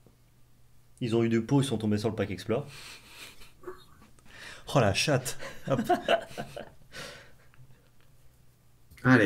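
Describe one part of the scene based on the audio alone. A second young man laughs and talks with animation close to a microphone.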